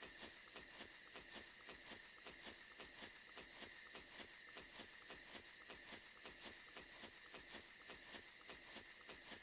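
Quick footsteps swish through tall grass.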